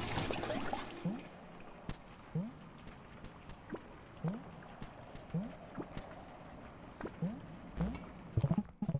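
Short soft rising blips sound again and again as a small creature hops along.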